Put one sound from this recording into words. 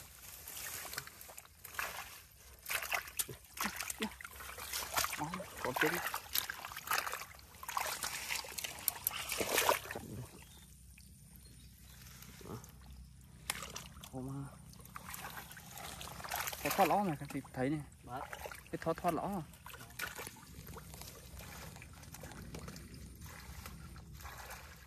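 Hands splash and squelch in shallow muddy water.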